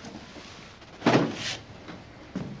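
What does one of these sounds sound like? A box is set down on a metal table with a thud.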